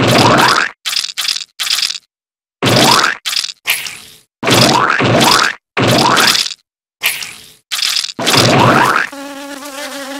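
Insects are squashed with loud, quick splatting bursts, again and again.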